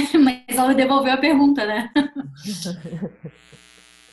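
Several people laugh loudly over an online call.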